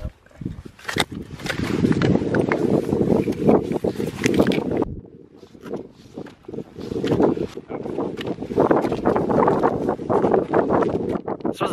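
Crampons crunch and scrape on snow and rock with each step.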